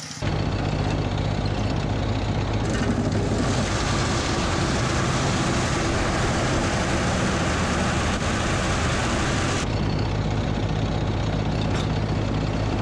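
A machine engine drones steadily close by.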